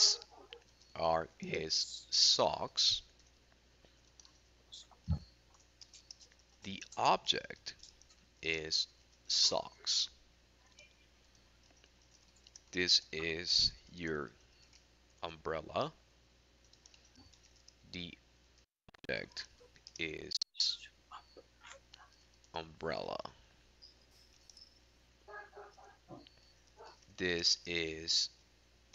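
A man speaks calmly and slowly over an online call.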